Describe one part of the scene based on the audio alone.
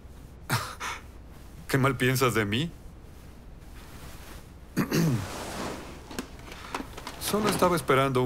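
A middle-aged man speaks nearby.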